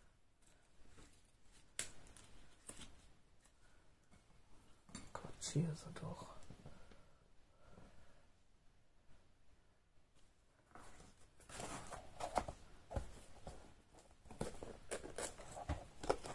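Cardboard rustles and scrapes as hands handle a box.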